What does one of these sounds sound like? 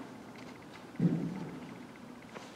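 A metal cup is set down on a table with a soft knock.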